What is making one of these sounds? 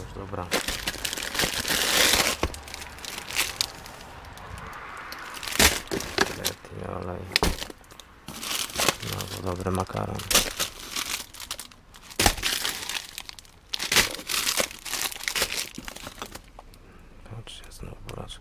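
Packets and jars knock and clatter against each other.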